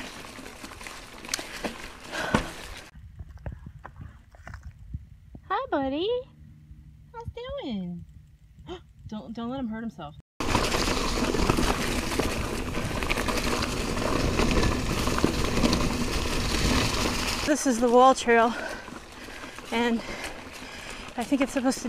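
Bicycle tyres roll and rattle over a bumpy dirt trail.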